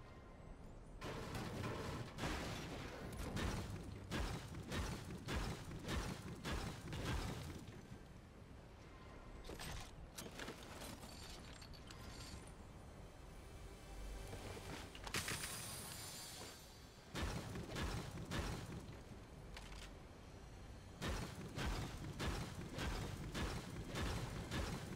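A pickaxe strikes hard material with repeated thuds.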